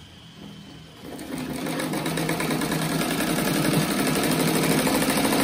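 A sewing machine runs steadily, stitching fast.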